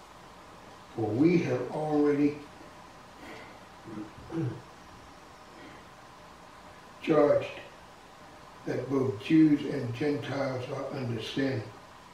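An elderly man speaks slowly and deliberately into a microphone, with pauses.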